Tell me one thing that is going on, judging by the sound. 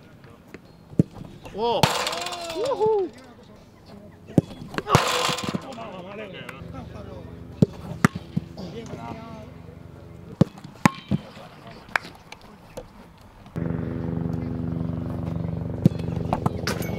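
A football is struck hard, each kick a sharp thud.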